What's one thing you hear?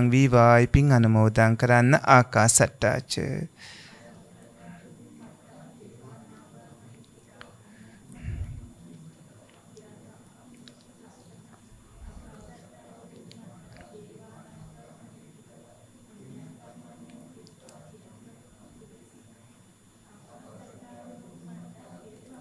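A man speaks slowly and quietly into a microphone.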